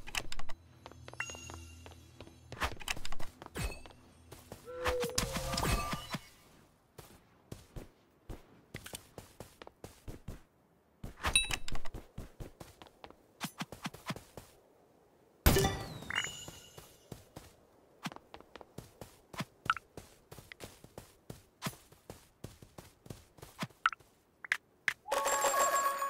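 Quick footsteps patter on hard blocks.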